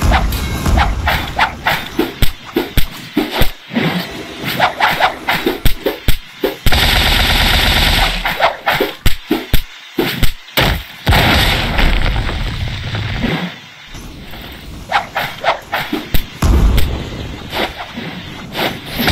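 Punches and sword slashes hit with sharp, rapid thuds.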